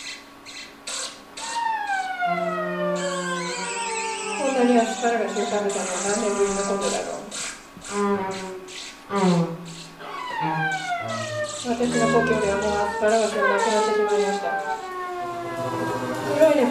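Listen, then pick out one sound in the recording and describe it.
A cello plays sliding, drawn-out notes.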